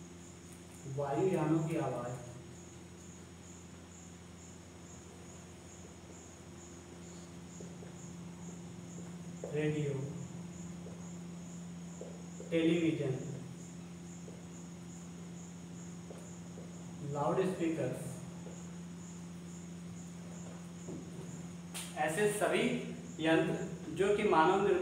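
A young man speaks in short, calm phrases close to a microphone.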